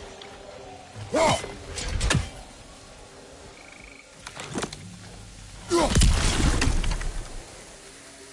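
An axe whooshes through the air.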